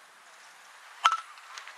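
A metal bat strikes a ball with a sharp ping.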